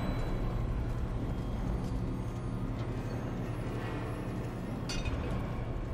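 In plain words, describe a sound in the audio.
A small tram rattles along a metal track.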